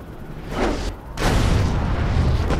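A heavy thud booms as something slams into the ground.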